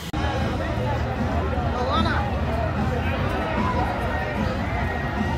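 A crowd of people chatters and murmurs outdoors.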